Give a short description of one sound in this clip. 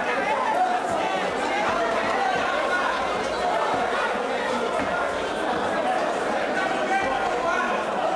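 A crowd of spectators shouts and cheers in an echoing hall.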